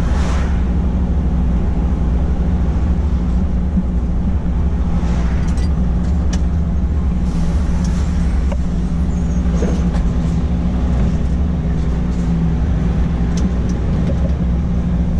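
A truck engine hums low and steady from inside the cab.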